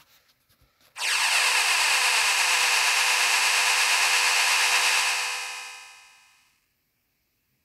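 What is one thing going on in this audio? A loud, harsh electronic game effect roars steadily, then fades away.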